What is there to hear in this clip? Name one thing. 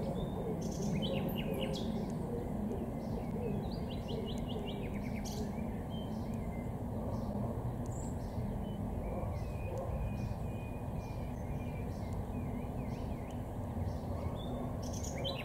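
Wind blows steadily outdoors and rustles leaves.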